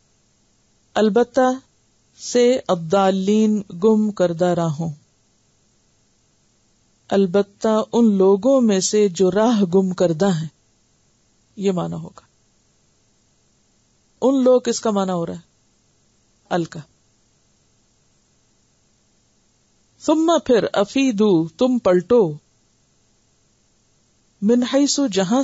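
A woman speaks calmly and clearly into a microphone, with pauses between phrases.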